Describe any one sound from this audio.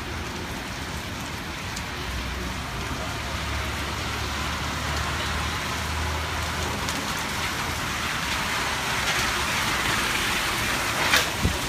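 A bus engine rumbles as the bus pulls in close.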